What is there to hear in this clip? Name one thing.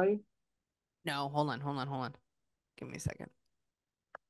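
Another woman speaks briefly over an online call.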